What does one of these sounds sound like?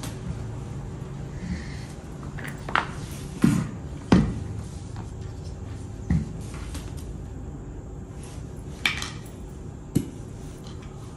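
Wooden bowls and plates knock and clatter on a table.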